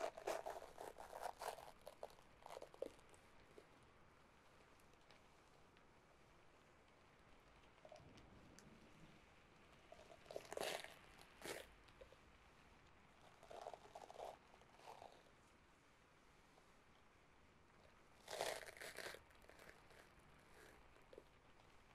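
A brush's bristles scratch and rustle close to a microphone.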